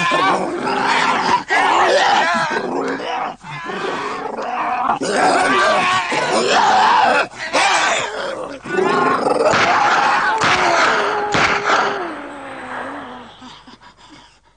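A man screams loudly in agony.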